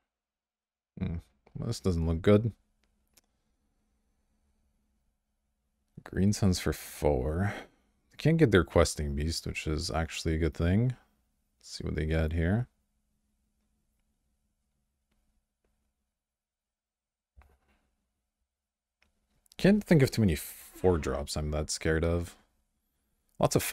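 A young man talks calmly and closely into a microphone, in bursts with pauses.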